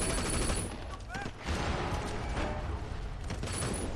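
A car explodes with a loud boom.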